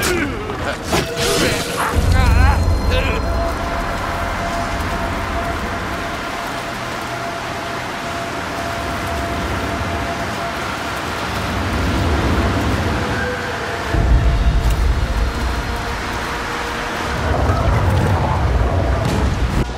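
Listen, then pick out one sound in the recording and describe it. Rain pours down steadily outdoors.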